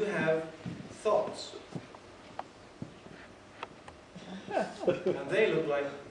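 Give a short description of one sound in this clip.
A man reads aloud into a microphone, his voice echoing in a hall.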